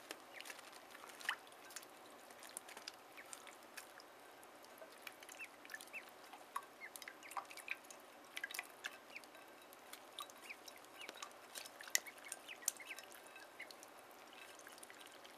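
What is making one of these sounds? Ducklings peep softly and often.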